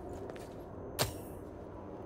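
A sharp blow strikes with a ringing clang.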